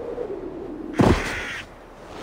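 A body lands with a heavy thud in snow.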